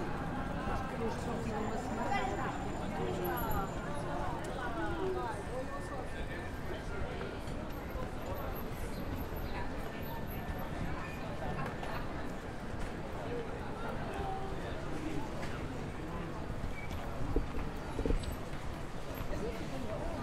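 A crowd of people chatters nearby outdoors.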